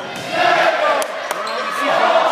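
A volleyball is struck by hand.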